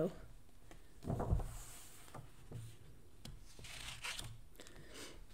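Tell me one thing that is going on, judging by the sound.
Pages of a book turn with a soft papery rustle.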